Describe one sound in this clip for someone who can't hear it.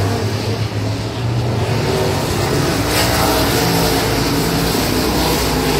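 A race car engine revs up and down as it passes close by.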